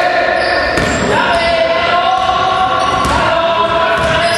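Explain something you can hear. A basketball thumps as it is dribbled on the floor.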